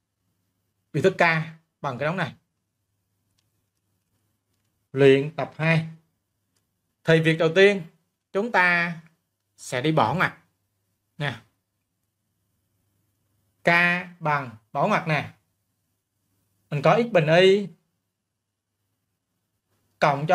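A man explains calmly in short phrases into a close microphone, with pauses between them.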